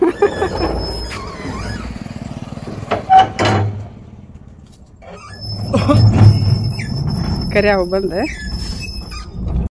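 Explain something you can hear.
A metal gate rattles and rolls as it is pushed.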